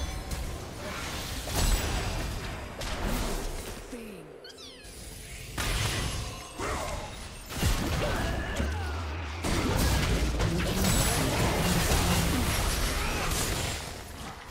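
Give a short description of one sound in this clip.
Magic spells crackle and burst in a fight.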